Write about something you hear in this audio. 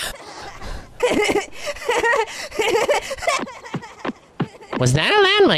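A cartoon man laughs loudly.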